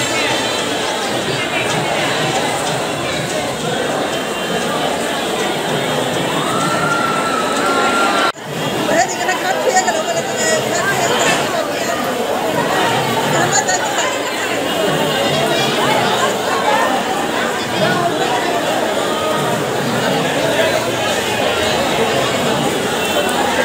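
A crowd chatters and shouts loudly outdoors.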